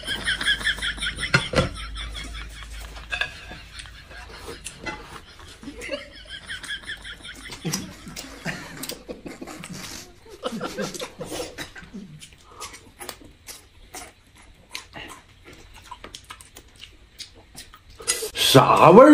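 Chopsticks click against bowls and plates.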